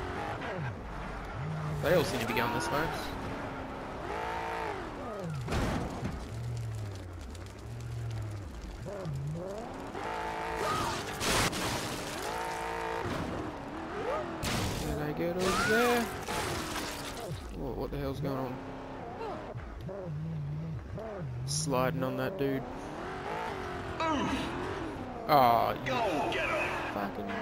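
A game car's engine revs up and down.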